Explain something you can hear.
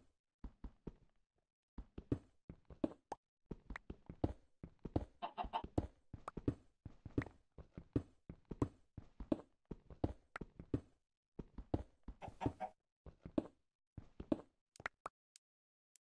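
A pickaxe chips rapidly at stone, with blocks cracking and breaking.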